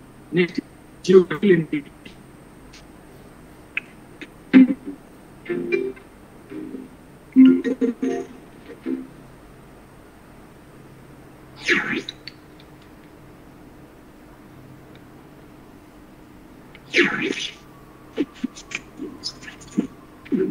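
A young man speaks in short bursts over an online call.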